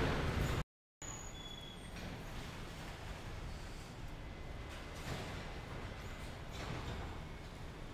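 A garbage truck's machinery whirs as it tips bins.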